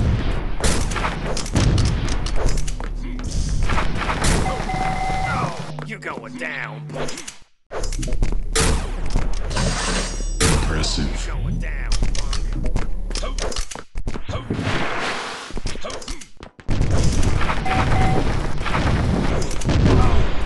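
A crackling electric beam weapon fires in bursts.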